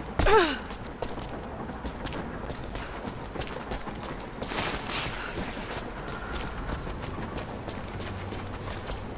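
Footsteps crunch on snow and gravel.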